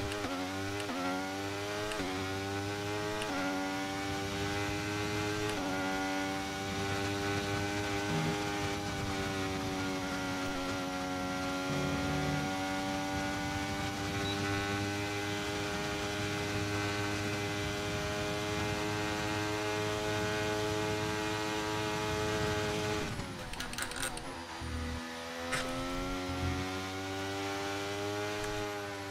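A racing car engine screams at high revs, climbing in pitch with each upshift.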